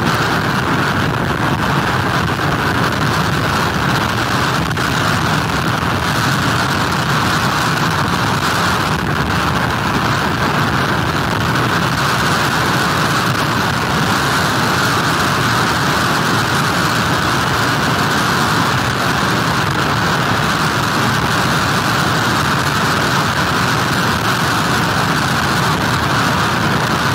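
Strong wind roars steadily outdoors.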